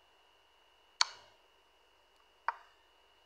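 A short wooden click sounds as a chess piece is moved.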